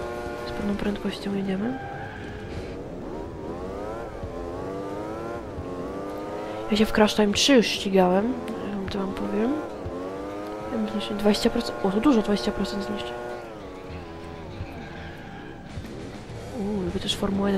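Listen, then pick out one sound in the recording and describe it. A kart engine whines steadily, rising and falling in pitch as it speeds up and slows down.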